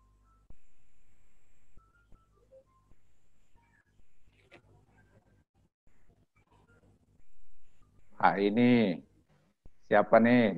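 A middle-aged man speaks calmly over an online call.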